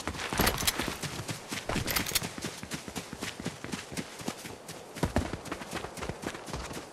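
Quick footsteps patter over grass and dirt.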